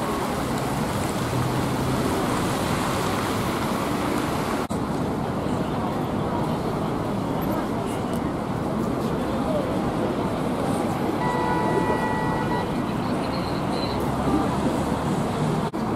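A bus engine idles nearby.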